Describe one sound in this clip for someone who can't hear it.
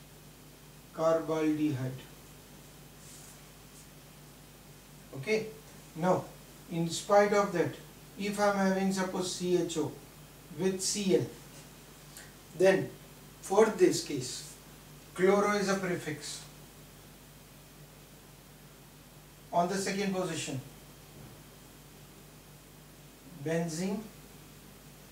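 A man speaks calmly in short phrases, close by, as if teaching.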